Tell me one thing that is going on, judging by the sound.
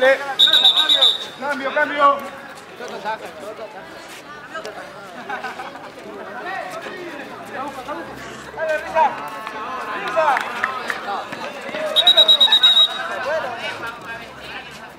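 A crowd of men shouts and talks outdoors.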